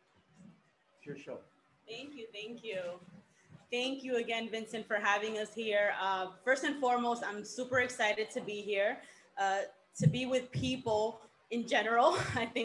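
A young woman speaks calmly into a microphone over a loudspeaker.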